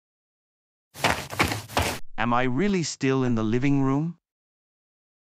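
A young man speaks with surprise.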